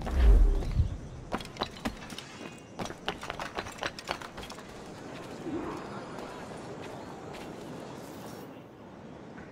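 Quick footsteps patter over roof tiles and ground.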